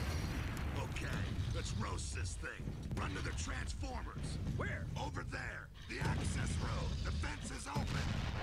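A man's voice speaks urgently through game audio.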